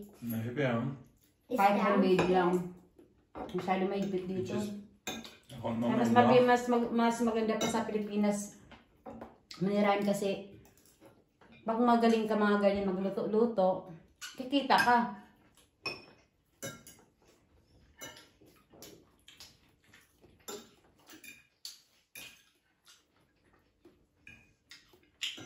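Cutlery clinks and scrapes on plates.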